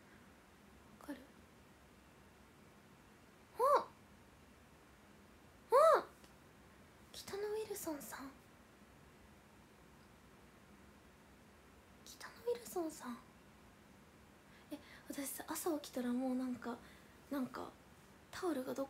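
A young woman speaks close to a microphone in short, lively bursts with pauses.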